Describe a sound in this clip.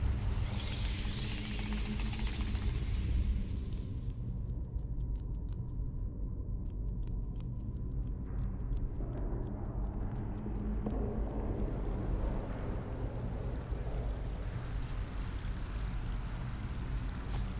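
Footsteps tread slowly on rough stone.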